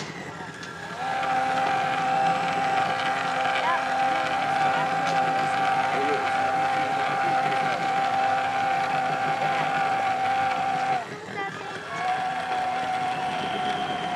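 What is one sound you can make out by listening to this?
A small electric motor of a model boat whines steadily.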